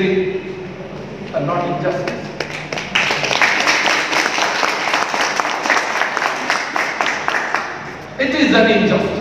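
A middle-aged man speaks into a microphone, his voice carried over a loudspeaker in a hall.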